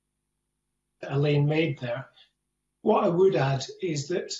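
A man speaks steadily over an online call.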